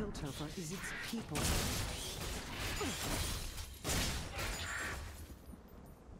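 Video game combat effects clash and burst.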